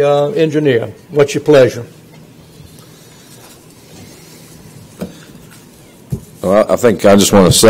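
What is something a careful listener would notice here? A man speaks through a microphone in a large room, pausing between phrases.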